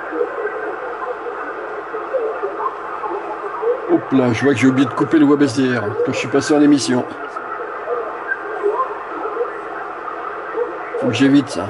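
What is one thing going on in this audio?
A radio receiver hisses and crackles with static.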